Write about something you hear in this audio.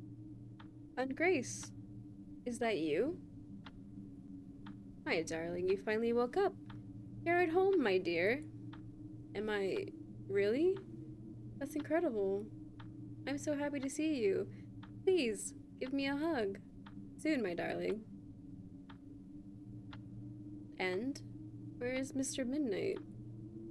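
A young woman reads out lines with animation, close to a microphone.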